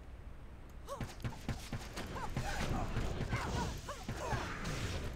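Monsters shriek and growl as they attack.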